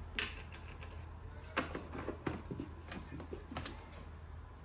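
A plastic machine knocks and scrapes as it is set down on a metal table.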